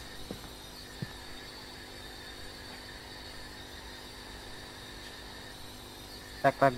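A handheld radio hisses softly with static.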